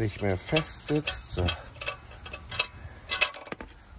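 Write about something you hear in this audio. A metal tool clicks and taps against a bolt.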